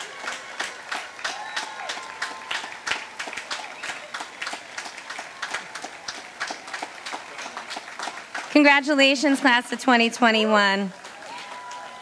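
A large crowd claps steadily outdoors.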